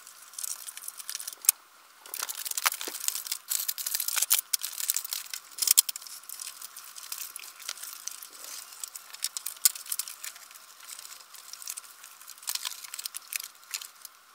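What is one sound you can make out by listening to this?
A stapler clicks sharply several times.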